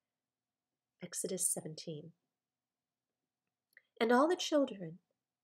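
A woman speaks calmly and close to a microphone, in two short bursts.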